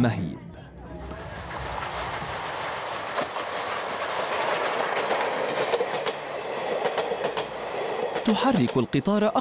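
A steam train rumbles past close by.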